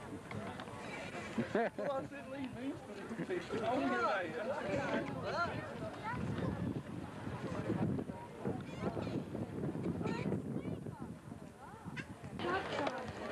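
Several adults chat nearby outdoors.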